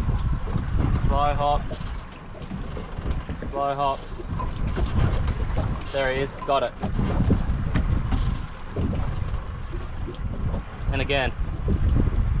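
A man speaks briefly in short bursts, close by.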